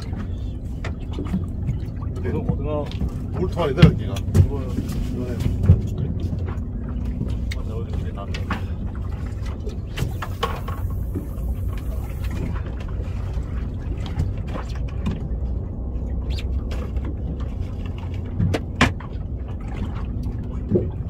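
A boat engine idles with a low steady rumble.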